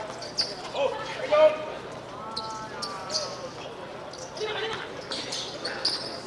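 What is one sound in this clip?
Men shout and call out to each other across an outdoor court.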